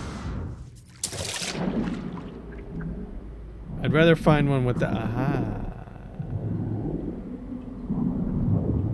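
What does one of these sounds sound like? A low, muffled underwater rumble goes on.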